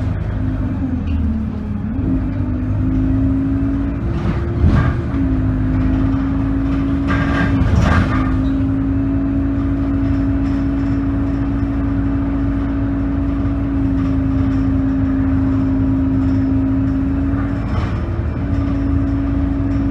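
A vehicle engine hums steadily from inside the vehicle as it drives.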